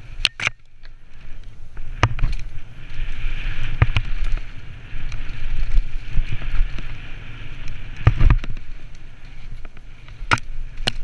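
Tyres roll and crunch over a rough dirt trail.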